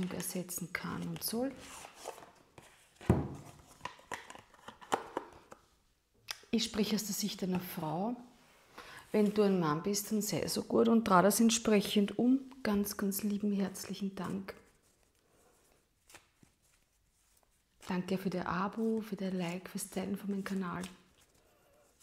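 A woman speaks calmly and warmly close to a microphone.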